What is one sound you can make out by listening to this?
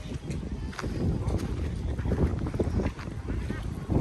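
Small waves lap against a stone shore.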